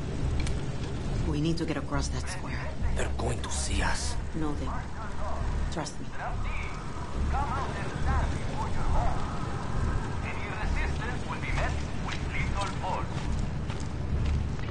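A man talks into a microphone.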